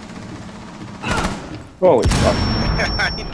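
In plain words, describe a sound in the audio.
A gun fires a short burst of shots.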